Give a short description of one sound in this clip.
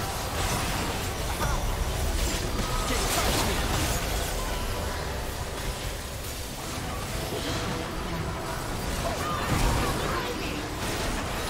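Magic spells whoosh and crackle in a fast-paced fantasy battle.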